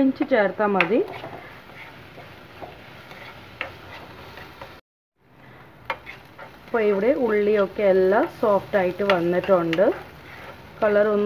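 Onions sizzle in a hot pan.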